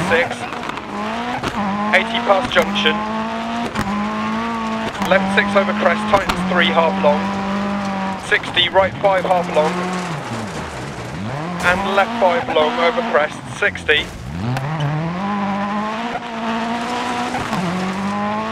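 A rally car engine roars and revs up and down through the gears.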